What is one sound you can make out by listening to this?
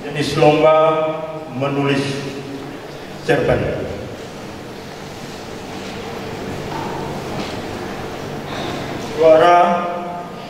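An elderly man speaks slowly and solemnly into a microphone, heard through loudspeakers in an echoing hall.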